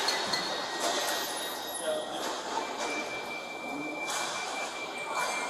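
A young woman speaks quietly close by, in a large echoing hall.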